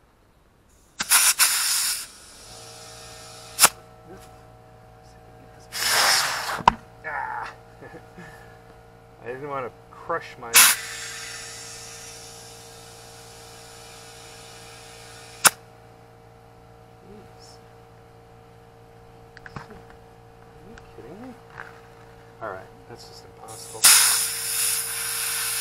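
Compressed air hisses in short bursts into a tyre.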